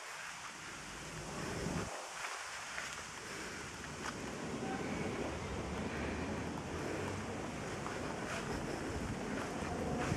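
Wind blows outdoors and rustles the leaves.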